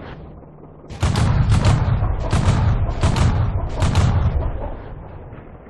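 A tank cannon fires with a loud, rolling boom.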